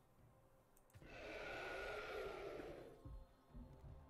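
A dragon roars.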